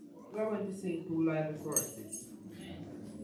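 A woman speaks into a microphone over a loudspeaker in an echoing hall.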